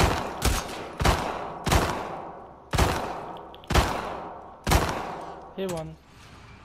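Gunshots ring out one after another with a sharp echo.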